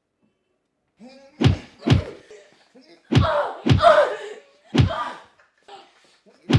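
A man grunts with effort.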